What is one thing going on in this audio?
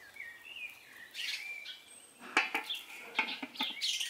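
A metal lid clatters onto a steel pan.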